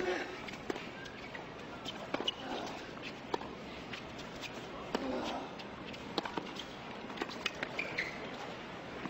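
Tennis rackets strike a ball back and forth with sharp pops.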